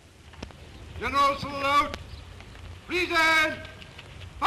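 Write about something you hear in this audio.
A man shouts drawn-out drill commands loudly outdoors.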